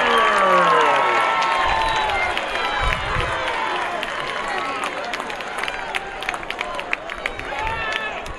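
A crowd cheers loudly outdoors and slowly dies down.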